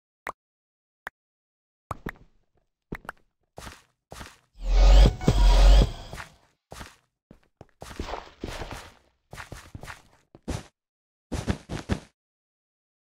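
Blocks crunch and thud as they are broken and placed in quick bursts.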